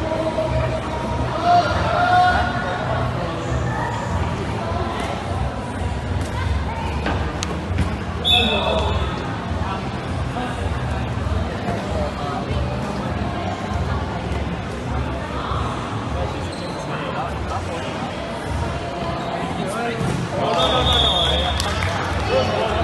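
Young players shout to each other nearby.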